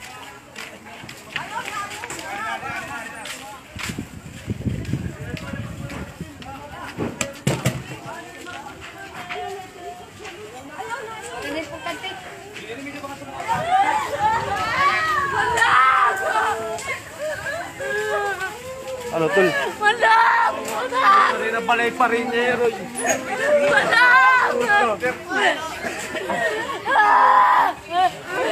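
Several men and women talk and shout excitedly nearby.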